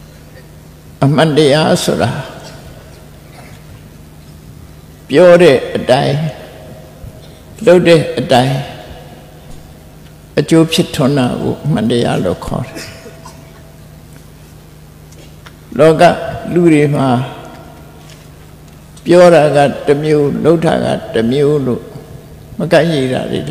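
An elderly man chants in slow, separate phrases with pauses between them.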